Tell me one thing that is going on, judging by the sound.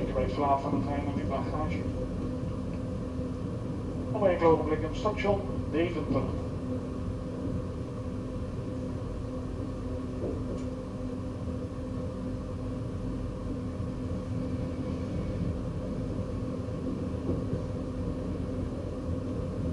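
A train rumbles steadily along the rails.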